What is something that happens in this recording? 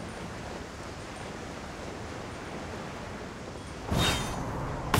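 Wind rushes steadily past a gliding character.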